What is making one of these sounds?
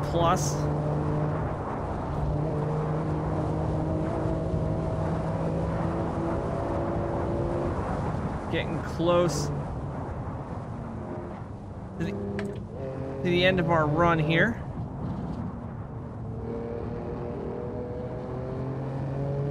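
A car engine roars and hums steadily, rising and falling.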